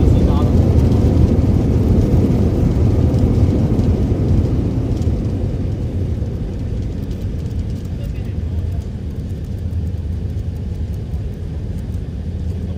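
An airliner's engines roar steadily from inside the cabin, slowly easing off.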